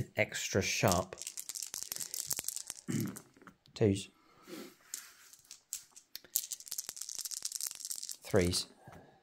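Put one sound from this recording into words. Dice rattle in a cupped hand.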